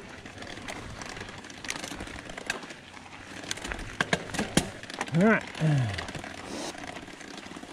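A bicycle frame clatters and clicks over bumps.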